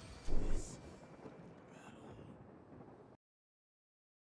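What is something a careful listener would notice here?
A short triumphant chime plays from a game.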